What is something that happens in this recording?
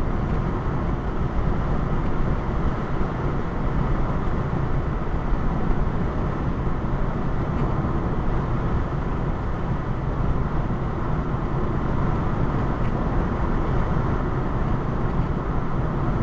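Tyres roar steadily on a highway.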